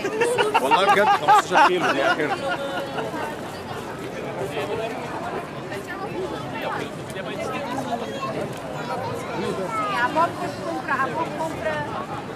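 A crowd of people chatters outdoors nearby.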